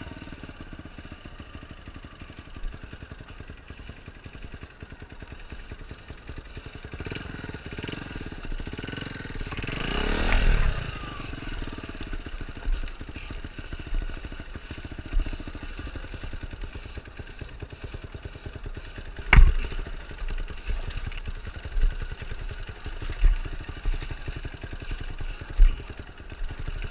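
A dirt bike engine revs as it climbs a rocky dirt trail.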